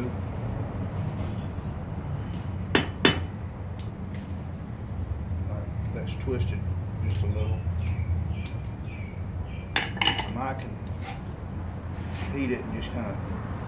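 Metal tongs clink against the anvil.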